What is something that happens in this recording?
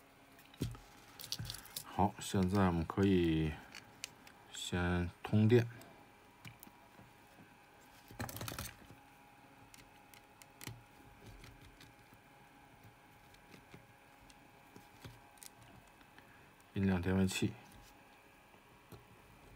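A small circuit board clicks and taps softly as it is handled.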